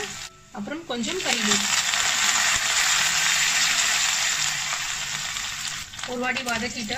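Hot oil sizzles loudly in a pan.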